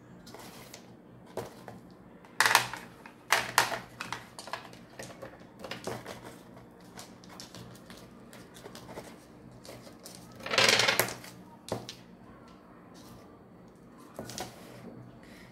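Pebbles click and clack as they are set down on a hard surface.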